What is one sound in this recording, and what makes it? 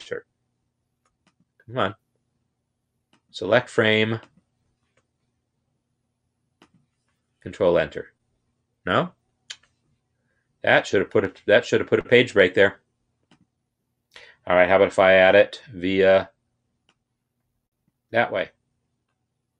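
A man talks calmly and closely into a microphone, in short phrases with pauses.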